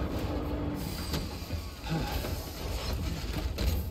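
A vehicle door clunks open.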